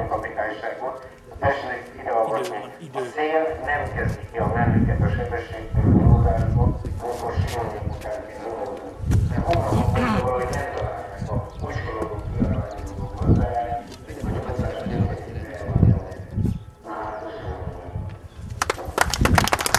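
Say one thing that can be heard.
Men talk and murmur outdoors in a crowd.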